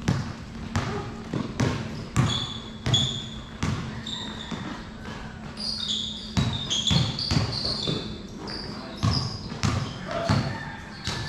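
A basketball bounces repeatedly on a hard court.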